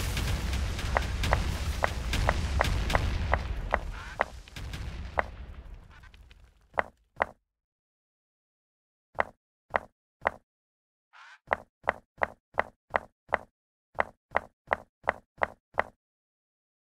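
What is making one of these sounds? A game character places blocks with quick, even clicking pops.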